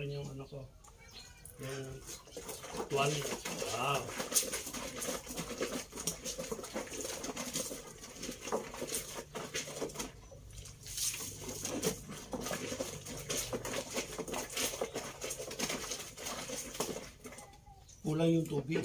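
Water splashes in a basin.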